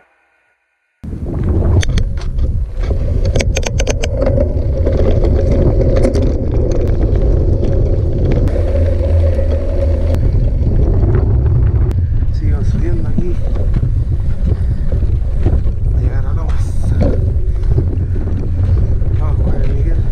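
Bicycle tyres crunch and rumble over a gravel track.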